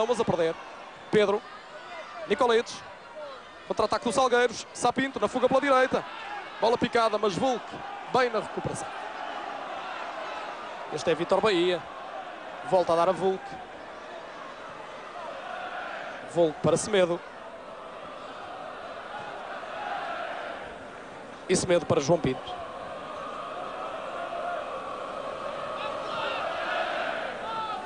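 A stadium crowd murmurs and cheers, swelling louder toward the end.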